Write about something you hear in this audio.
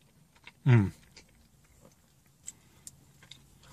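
A man chews food with soft smacking sounds.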